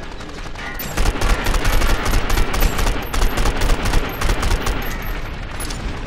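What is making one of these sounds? An assault rifle fires bursts.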